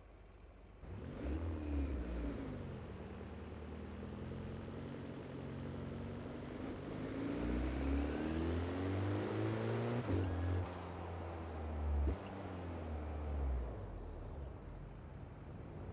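A car engine roars as the car speeds up and shifts through gears.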